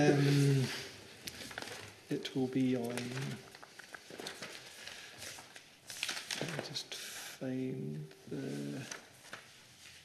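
A man speaks calmly through a microphone, with pauses.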